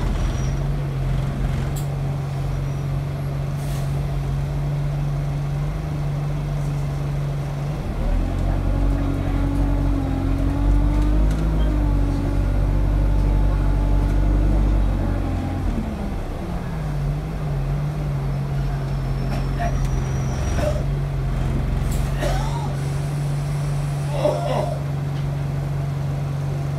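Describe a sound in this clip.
A bus engine hums steadily inside the bus.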